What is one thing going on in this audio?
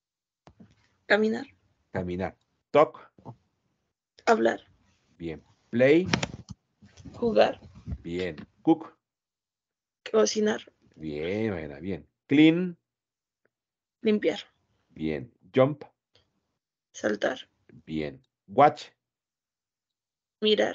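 A man speaks slowly and clearly through a headset microphone over an online call.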